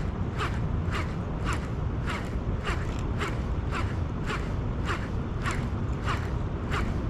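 A fishing reel whirs with a steady, rhythmic clicking as its handle is wound.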